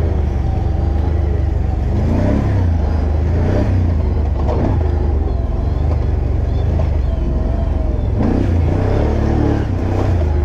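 Tyres rumble over a bumpy dirt track.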